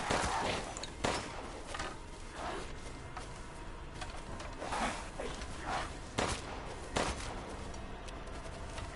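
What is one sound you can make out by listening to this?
Dry grass and brush rustle and swish as someone pushes through them.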